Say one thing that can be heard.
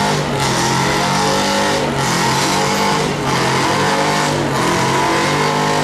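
A loud engine roars steadily under strain.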